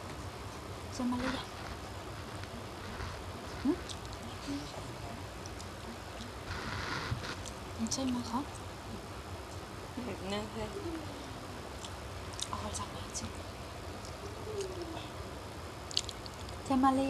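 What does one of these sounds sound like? A girl talks quietly and casually close by.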